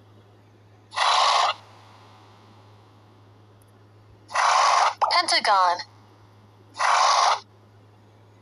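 Bubbles pop with short hissing bursts.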